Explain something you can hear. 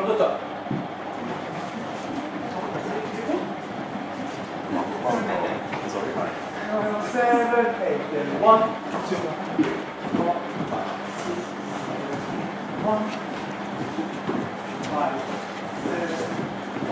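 Men and women chatter and call out nearby.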